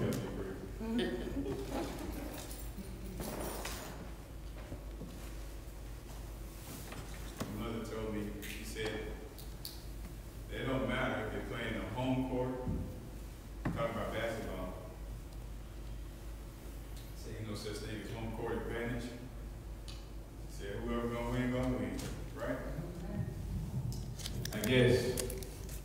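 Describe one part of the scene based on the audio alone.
A man speaks calmly into a microphone, with pauses, in a room with some echo.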